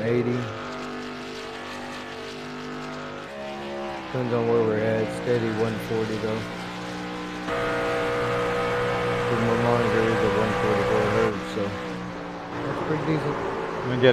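A truck engine drones steadily, rising and falling in pitch as it races.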